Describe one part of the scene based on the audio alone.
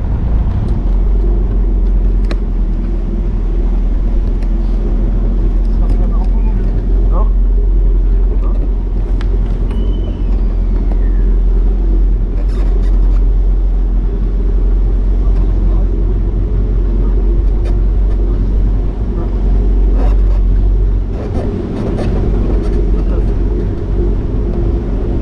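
A car engine rumbles steadily while driving slowly.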